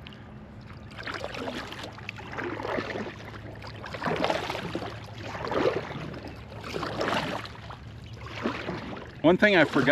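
A paddle splashes in water with each stroke.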